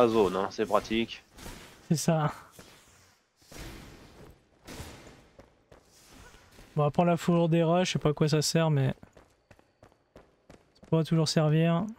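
Footsteps scuff softly on a stone floor.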